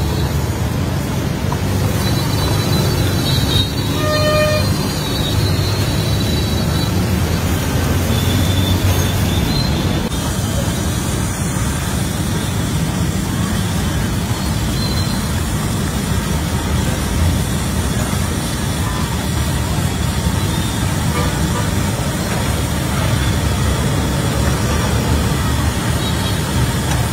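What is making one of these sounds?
Hot oil sizzles and bubbles steadily in a large pan.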